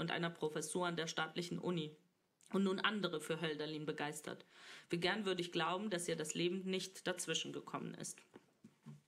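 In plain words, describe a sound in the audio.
A woman reads aloud calmly into a microphone.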